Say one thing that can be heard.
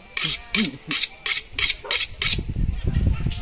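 A knife blade is sharpened against another blade with quick scraping strokes.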